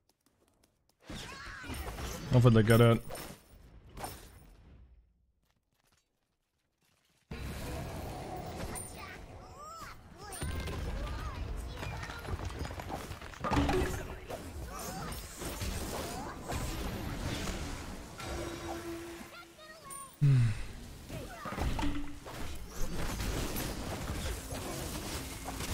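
Game spells blast and whoosh in a fight.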